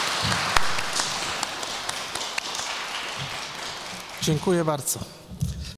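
A middle-aged man speaks calmly into a microphone in a large echoing hall.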